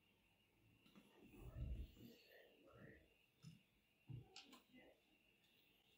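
Small plastic and metal parts click and rattle softly.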